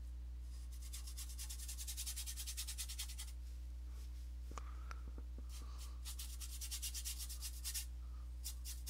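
A paintbrush scrapes and dabs thick paint.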